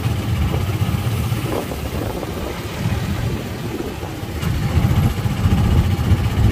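A vehicle's engine rumbles steadily up close.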